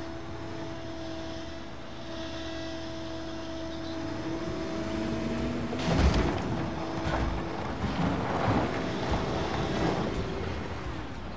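A backhoe loader's diesel engine runs.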